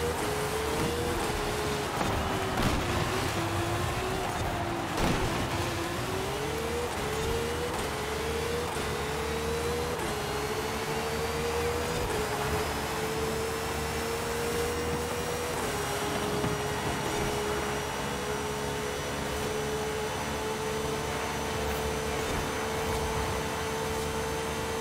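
A racing car engine roars at high revs, its pitch climbing as it speeds up.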